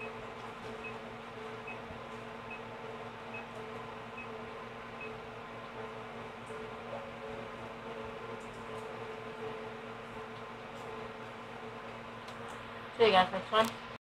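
Soft electronic game music plays from a television speaker.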